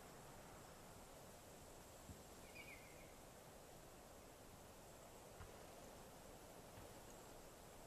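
Tall grass rustles softly as someone pushes through it.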